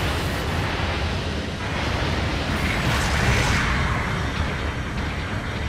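Gunfire and explosions boom continuously.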